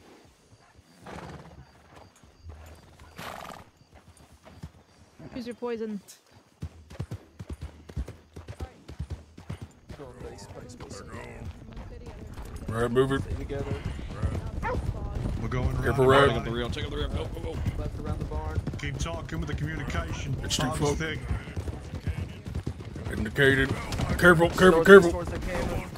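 Horses' hooves clop along a road at a steady trot.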